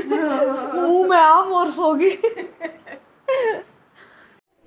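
A woman speaks close by, with animation.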